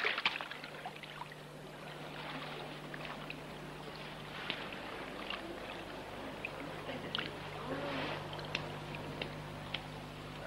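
A crowd of people murmurs faintly in the background.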